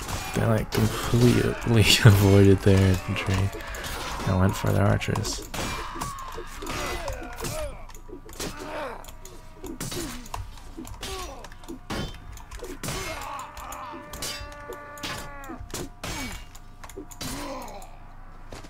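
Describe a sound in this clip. Swords and shields clash with sharp metallic blows.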